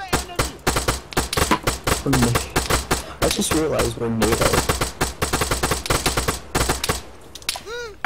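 A rifle fires in rapid bursts of sharp shots.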